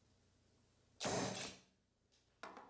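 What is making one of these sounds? A rubber stamp thumps down onto paper.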